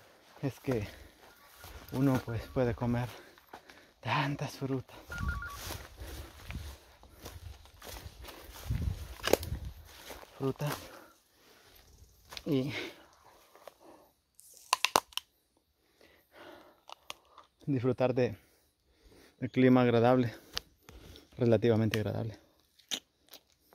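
A man talks calmly and close by.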